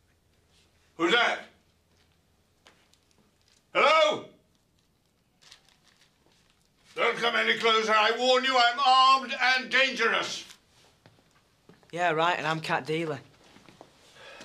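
An elderly man speaks in a gruff, raised voice.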